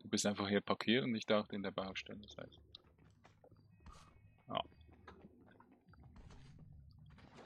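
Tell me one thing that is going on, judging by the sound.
Footsteps run across pavement.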